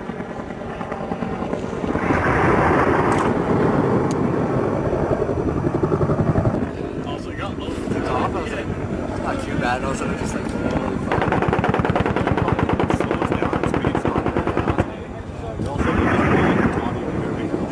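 Machine guns fire long automatic bursts outdoors.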